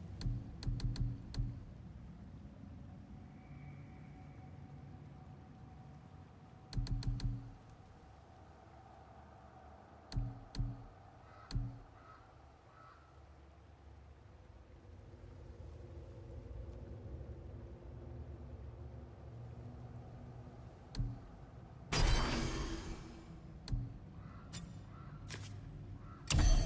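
Short menu clicks and chimes sound as options change.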